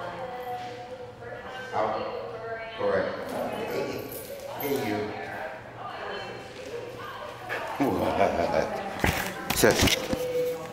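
A man talks to a dog in a lively, coaxing voice in a room with some echo.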